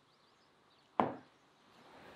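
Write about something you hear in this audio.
A mug is set down on a wooden table with a knock.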